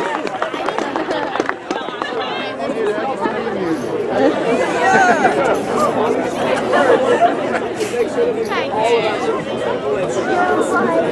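A band plays softly, with clarinets and horns blending.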